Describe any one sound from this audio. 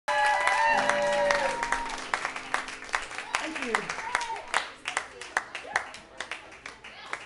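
An acoustic guitar is strummed and plucked in a room with a slight echo.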